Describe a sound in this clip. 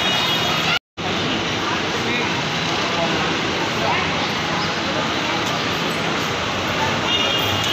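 A crowd of men chatters and murmurs nearby.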